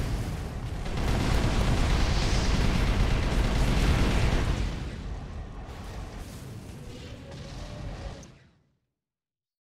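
A large explosion booms and rumbles, then slowly fades.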